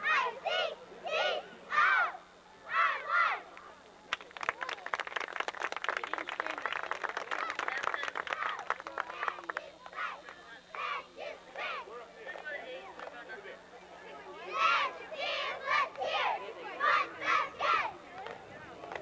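A group of young girls shout a cheer in unison outdoors.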